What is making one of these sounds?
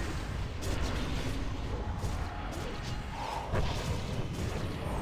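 A deep rumbling game soundscape plays steadily.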